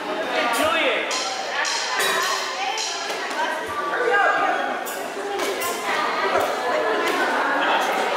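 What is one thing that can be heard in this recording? A crowd of young people chatters in a large echoing hall.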